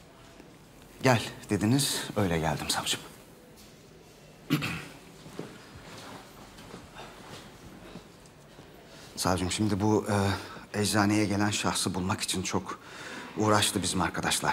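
An elderly man speaks calmly and gravely.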